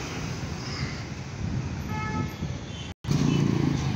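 A motorbike engine drones as it passes nearby.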